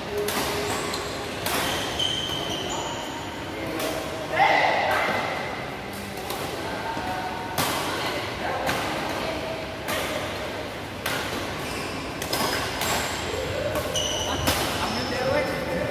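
Rackets smack a shuttlecock back and forth in an echoing hall.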